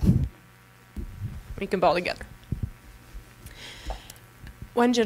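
A second woman speaks into a handheld microphone.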